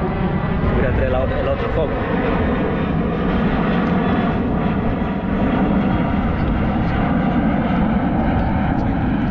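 Strong wind blows steadily across the microphone outdoors.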